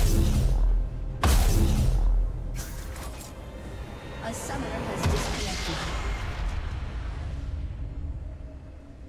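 Magical game sound effects whoosh and crackle loudly, then fade away.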